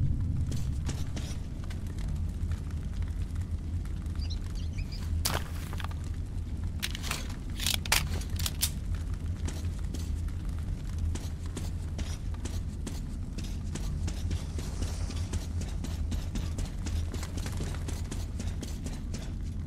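A small fire crackles nearby.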